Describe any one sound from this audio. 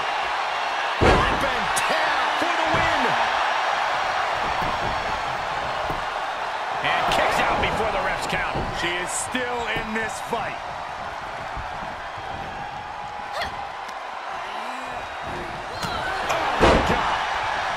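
Heavy thuds of bodies slamming onto a wrestling mat ring out.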